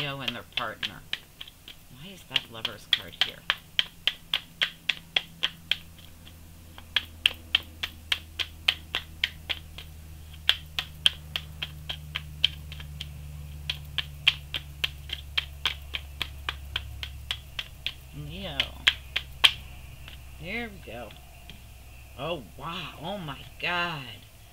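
Playing cards shuffle and slap softly in a hand.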